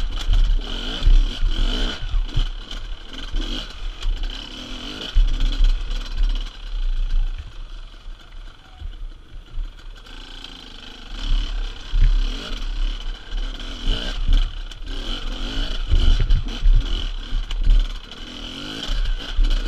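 Tyres crunch and bump over loose rocks.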